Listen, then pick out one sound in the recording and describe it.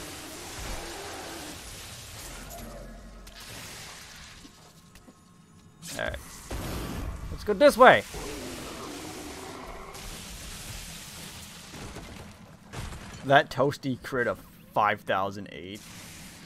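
Magic spells crackle and zap in a game.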